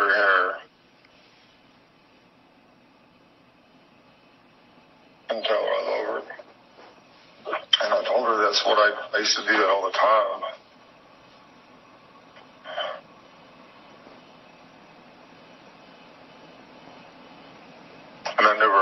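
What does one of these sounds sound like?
A middle-aged man speaks in short bursts over an online call.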